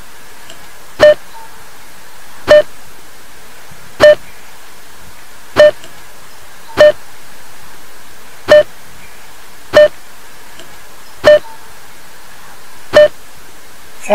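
A toy cash register beeps at even intervals.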